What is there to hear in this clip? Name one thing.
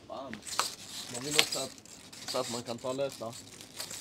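Plastic bottles rustle and clink as a young man handles them.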